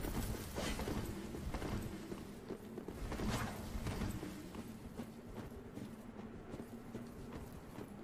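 Sword blows clash and slash repeatedly.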